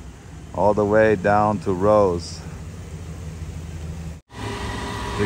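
A van engine hums as the van drives past.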